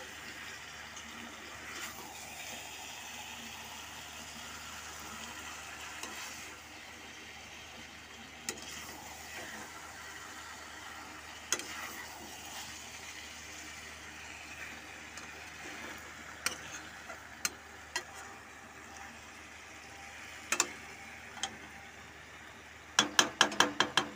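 A thick curry sizzles in a pan.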